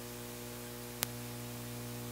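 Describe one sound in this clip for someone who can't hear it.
An effects pedal switch clicks once.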